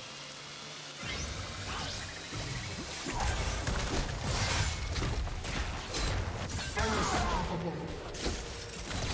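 Video game spell effects whoosh and boom in a fast fight.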